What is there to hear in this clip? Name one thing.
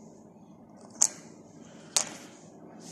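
A plastic key fob casing snaps shut with a sharp click.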